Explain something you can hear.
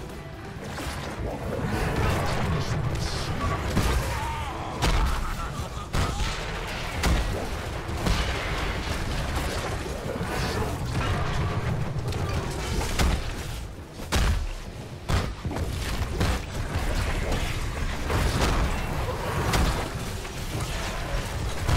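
Game combat sounds of magic blasts and hits clash constantly.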